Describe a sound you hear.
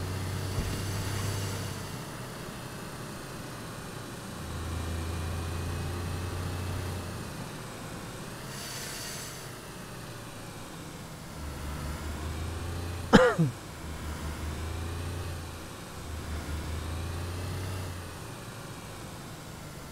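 A car engine hums steadily, rising and falling as the car speeds up and slows down.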